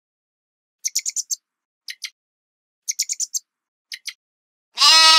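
Small rodents squeak in quick high chirps.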